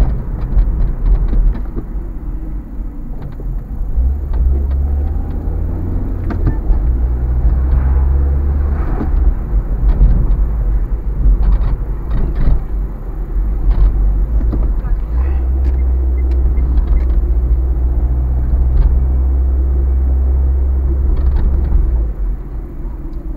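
Tyres roll over the road surface.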